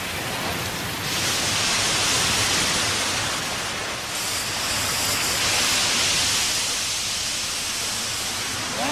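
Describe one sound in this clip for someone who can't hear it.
Water gushes and roars.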